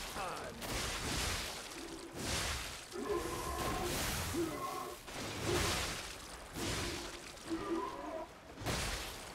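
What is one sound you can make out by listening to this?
Heavy blades swing and whoosh through the air.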